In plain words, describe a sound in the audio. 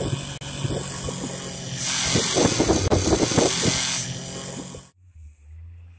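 Tyres churn and spray through snow.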